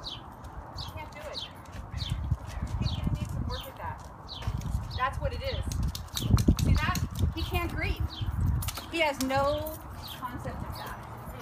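A dog whines and yelps nearby.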